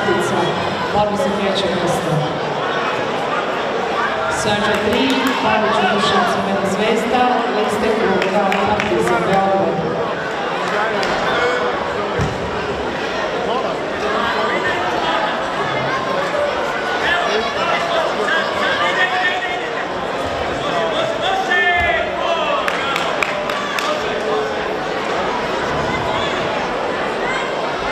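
A large crowd chatters and calls out in a big echoing hall.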